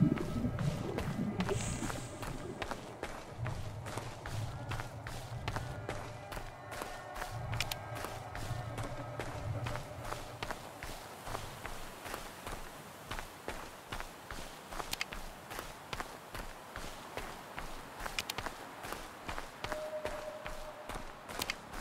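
Footsteps crunch steadily through grass and undergrowth.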